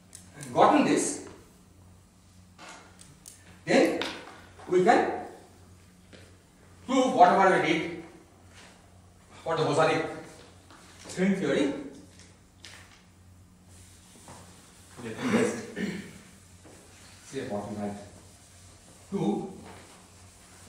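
A man speaks calmly in an echoing room, with pauses.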